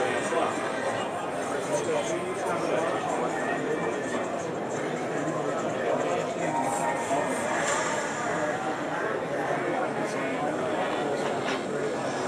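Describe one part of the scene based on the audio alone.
A crowd of people chatters all around in a large, busy hall.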